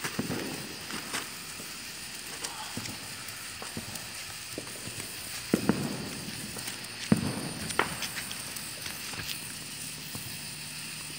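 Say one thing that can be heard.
A sparkler fizzes and crackles close by.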